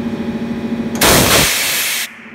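A tyre bead pops loudly into place.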